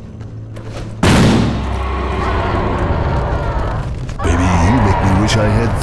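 A deep rumbling roar fills a large echoing space.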